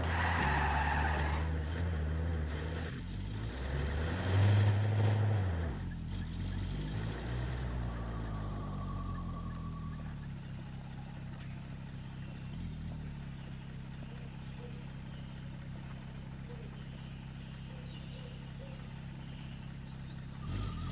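A heavy vehicle's engine rumbles and revs up and down.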